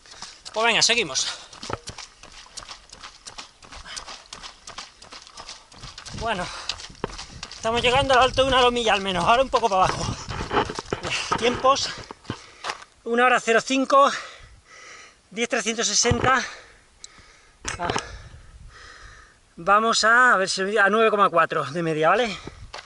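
A man talks breathlessly and close by.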